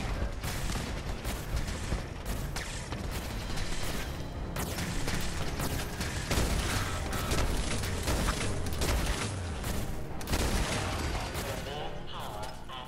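A heavy energy gun fires in rapid bursts.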